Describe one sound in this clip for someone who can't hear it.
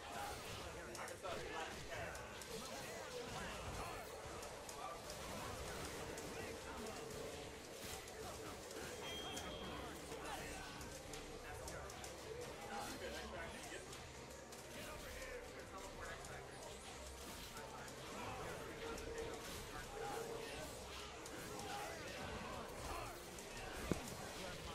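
Upbeat game music plays steadily.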